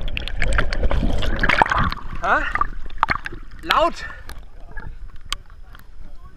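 Water sloshes and splashes at the surface.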